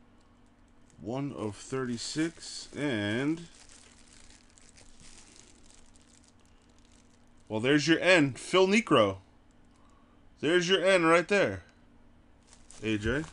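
Plastic wrapping crinkles softly as a ball is turned in the hands.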